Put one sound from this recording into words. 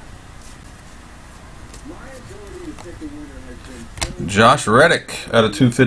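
Trading cards rustle and flick as a man shuffles through them.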